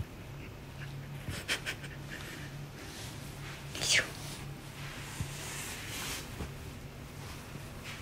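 A towel rustles as it is handled.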